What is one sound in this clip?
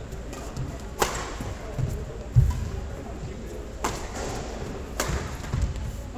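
A badminton racket strikes a shuttlecock with sharp pops.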